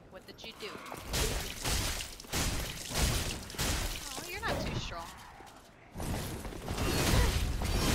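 Swords clash and strike in a game fight.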